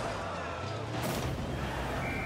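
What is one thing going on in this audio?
An explosion booms suddenly.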